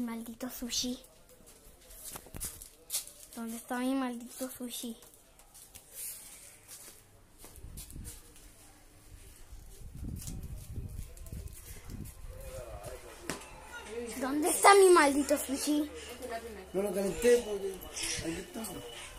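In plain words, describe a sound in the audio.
A young boy talks close to the microphone, with animation.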